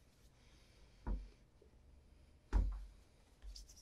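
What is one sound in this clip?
A shoe knocks against a wooden tabletop.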